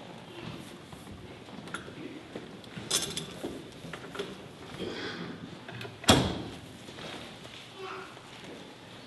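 Footsteps shuffle across a wooden floor in an echoing room.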